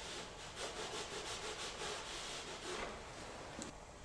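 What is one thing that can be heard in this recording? A hand rubs rhythmically across a canvas.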